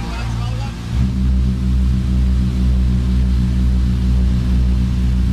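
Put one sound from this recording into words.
The engines grow louder and deeper as power increases.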